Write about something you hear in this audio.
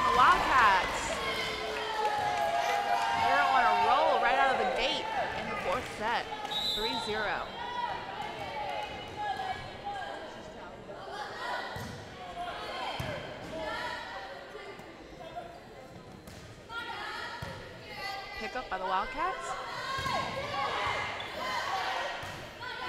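Spectators cheer and shout in an echoing gym.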